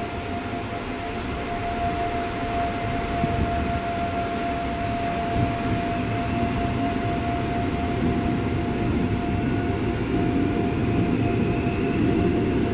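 A subway train rumbles and hums steadily as it moves.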